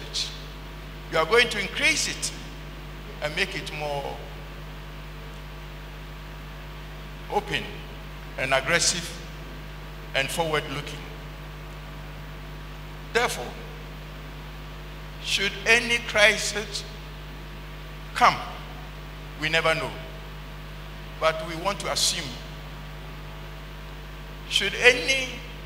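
An elderly man speaks slowly and solemnly into a microphone, with long pauses, in an echoing hall.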